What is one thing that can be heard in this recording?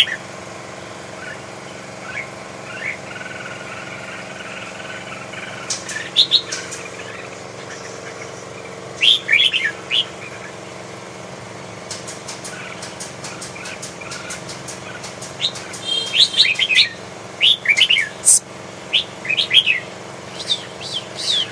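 Caged songbirds chirp and whistle in bright, sharp bursts.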